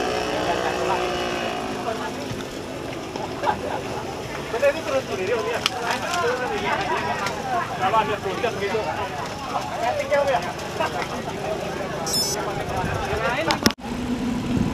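A crowd of men chatter and call out nearby.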